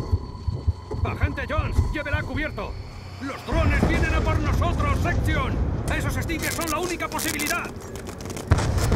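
A man shouts urgently nearby.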